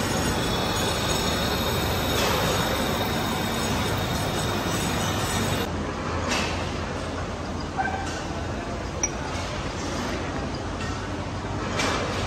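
A lathe motor rumbles steadily.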